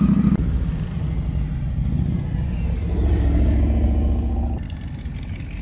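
A heavy motorcycle engine rumbles as it pulls away.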